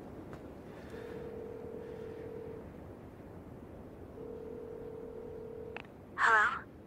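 A pay phone rings in short electronic bursts.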